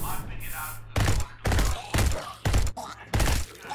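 A gun fires in short, loud bursts.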